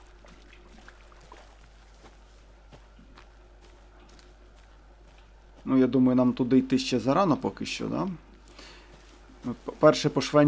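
Footsteps crunch softly on a forest floor.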